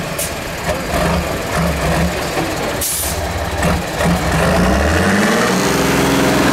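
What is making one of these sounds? A heavy truck engine revs and labours.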